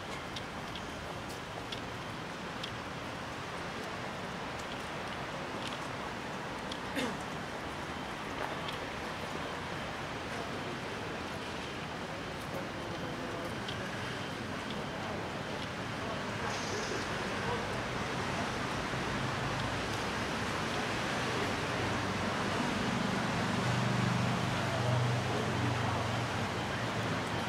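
Footsteps tap on wet paving stones.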